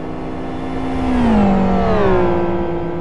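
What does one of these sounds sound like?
A racing car engine drops in pitch as the driver shifts gear and brakes.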